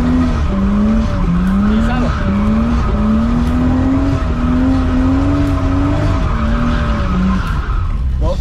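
A car engine roars at high revs, rising and falling in pitch.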